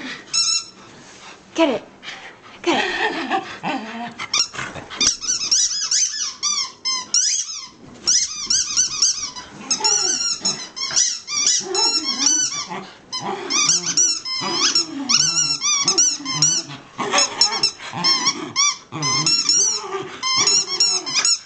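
Dogs growl playfully as they tug at a toy.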